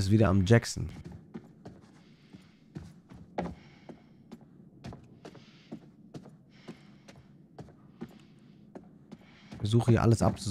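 Footsteps tap on a wooden floor at a steady walking pace.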